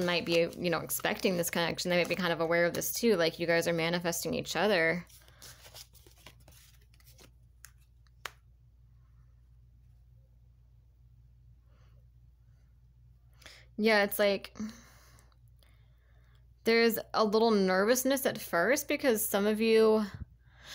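Playing cards slide and tap softly against each other.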